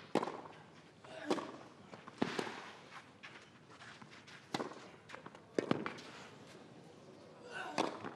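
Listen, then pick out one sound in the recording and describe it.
Tennis rackets strike a ball back and forth.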